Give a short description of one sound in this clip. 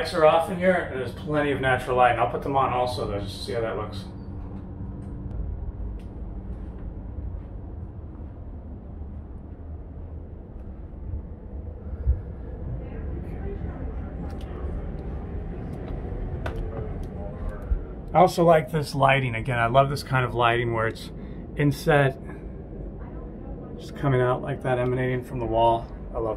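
A man talks close by in a calm, steady voice.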